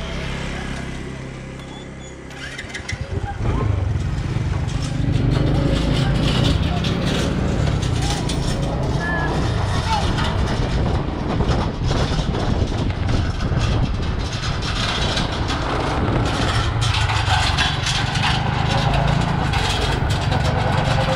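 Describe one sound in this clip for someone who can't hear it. A small motorcycle engine idles and then revs as it pulls away and drives off.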